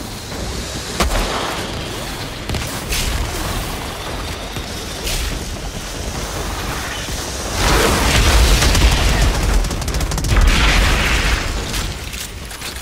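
Gunshots ring out in bursts.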